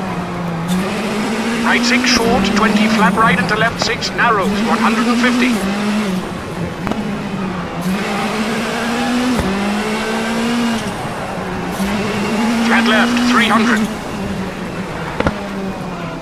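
A rally car engine roars and rises in pitch, dropping with each gear change.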